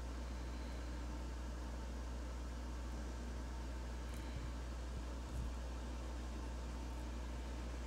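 A marker tip rubs softly on paper.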